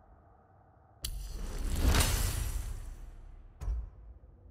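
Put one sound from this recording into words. A rising magical whoosh swells and fades as an upgrade completes.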